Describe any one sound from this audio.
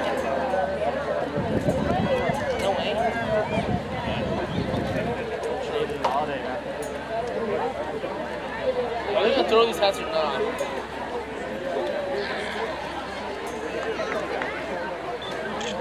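A large crowd chatters and murmurs outdoors in the distance.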